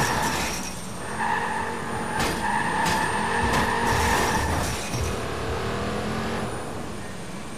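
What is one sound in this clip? A car engine roars and revs loudly.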